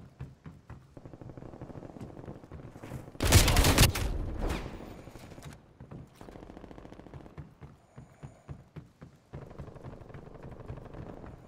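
Footsteps thud quickly on a metal deck.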